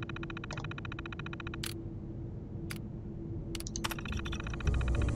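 Rapid ticking clatters as text prints out on a terminal.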